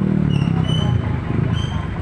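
A motor scooter buzzes past close by.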